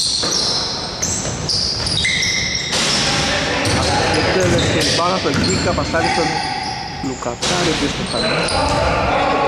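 Sneakers squeak sharply on a gym floor in an echoing hall.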